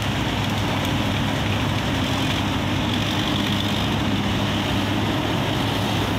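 Branches crackle and snap as an excavator bucket pushes through brush.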